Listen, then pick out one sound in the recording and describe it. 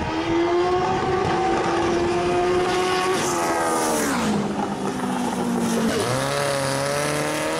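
Race car engines roar loudly and pass close by.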